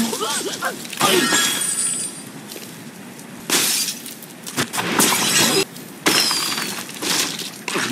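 A tower of blocks crashes and shatters in a video game.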